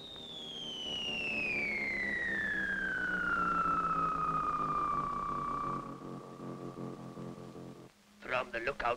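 A rocket engine roars with a whine that falls steadily in pitch, then cuts off.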